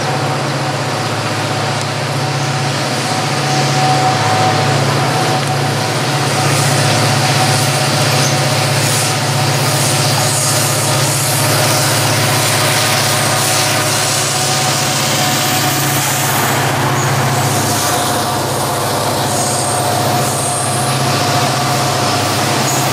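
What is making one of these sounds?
A diesel locomotive engine rumbles steadily as a train approaches and passes close by.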